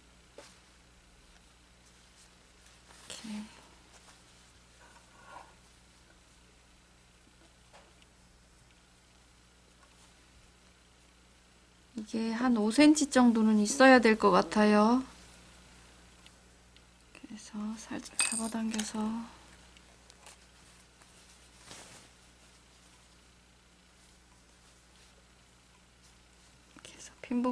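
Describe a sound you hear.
Cloth rustles softly as it is folded and handled.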